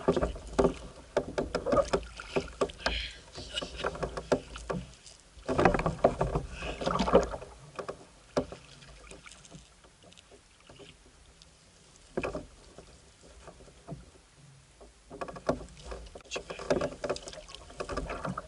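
Water splashes against a small boat.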